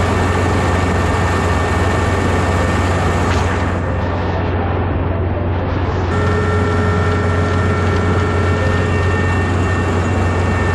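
A combine harvester engine drones steadily close by.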